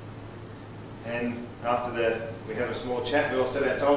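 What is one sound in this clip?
A man speaks calmly, heard from a distance in a large room.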